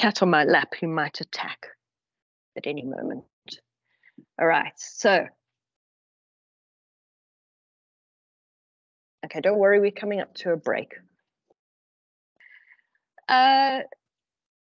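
An older woman speaks calmly through an online call, with pauses.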